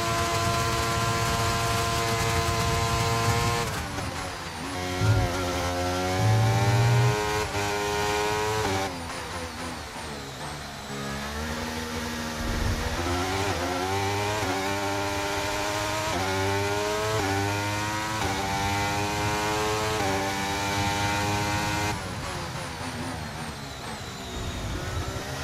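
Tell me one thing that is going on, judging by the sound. A racing car engine screams at high revs, rising through the gears and dropping as the car brakes for corners.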